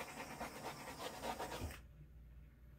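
A spray can hisses briefly.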